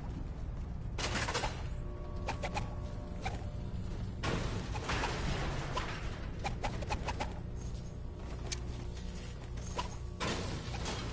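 A pickaxe strikes and smashes objects with sharp knocks.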